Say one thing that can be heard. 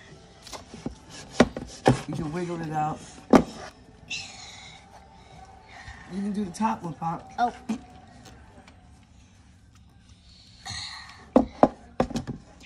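Wood and plastic knock and clatter.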